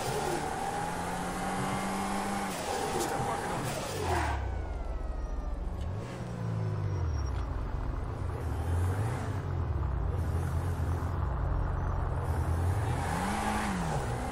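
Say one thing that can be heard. A car engine hums and revs up and down as it drives along.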